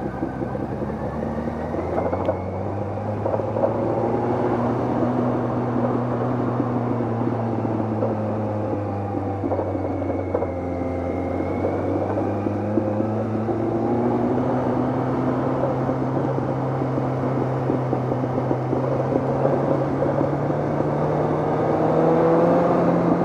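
A motorcycle engine hums steadily up close, rising and falling as it speeds up and slows down.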